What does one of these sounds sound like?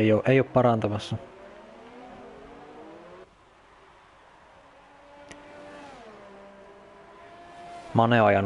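A racing car engine screams at high revs, rising and dropping in pitch with gear changes.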